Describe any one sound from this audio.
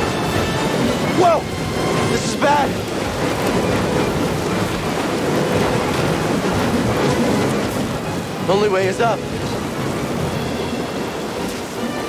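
Strong wind roars steadily.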